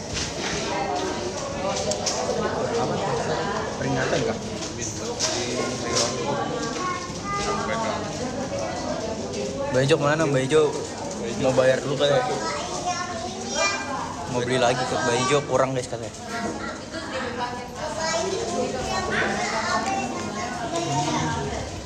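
Another young man chats nearby.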